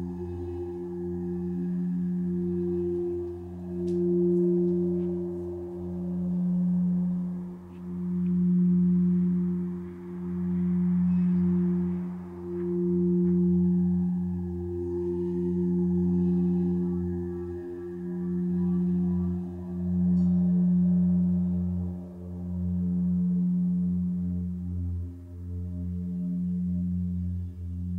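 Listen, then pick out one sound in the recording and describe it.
Crystal singing bowls hum with deep, steady ringing tones that swell and fade in slow waves.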